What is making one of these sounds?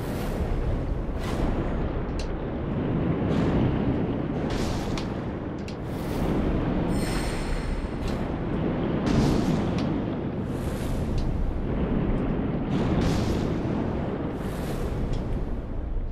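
A sword swishes through the air in quick bursts.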